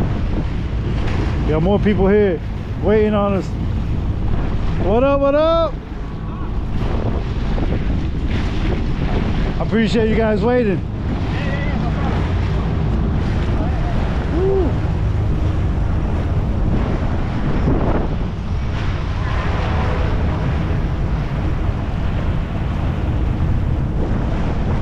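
Jet ski engines hum and churn through water.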